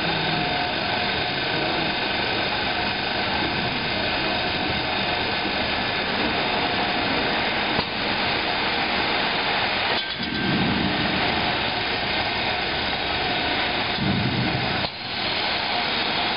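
Rollers rumble and rattle as a heavy block moves along a conveyor.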